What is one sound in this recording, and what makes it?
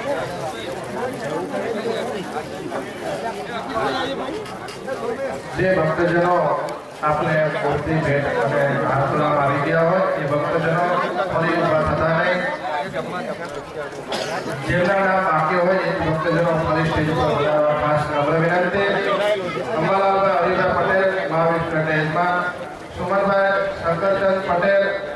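A crowd murmurs in the background.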